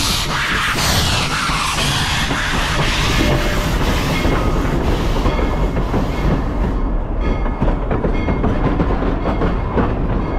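Railway cars rumble and clatter past on the tracks.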